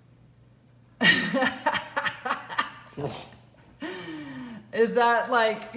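A teenage boy laughs loudly and uncontrollably, close by.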